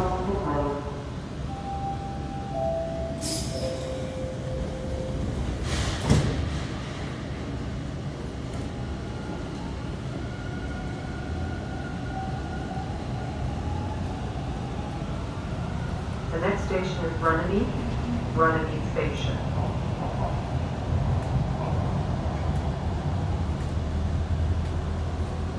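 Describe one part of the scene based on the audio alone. A subway train rumbles and hums as it pulls out of a station and speeds up.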